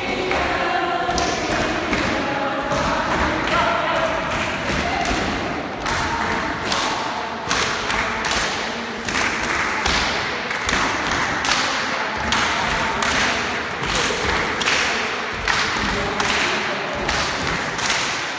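Many feet shuffle and step on a hard floor.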